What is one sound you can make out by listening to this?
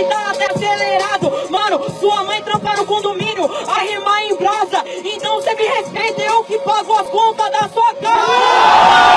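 A young man raps rhythmically into a microphone.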